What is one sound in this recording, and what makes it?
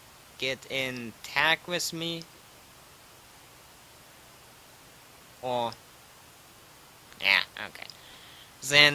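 A young man talks casually and closely into a microphone, with pauses.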